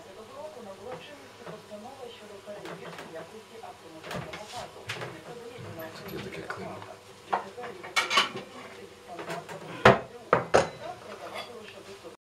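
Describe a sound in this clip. A man talks close by in a calm voice.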